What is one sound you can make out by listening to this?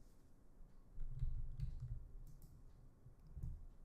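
A backpack rustles and thumps as it is picked up.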